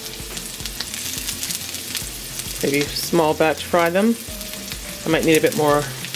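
Pieces of raw chicken drop into the pan with a sizzle.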